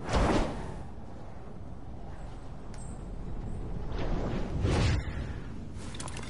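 Wind rushes steadily during a fast fall through the air.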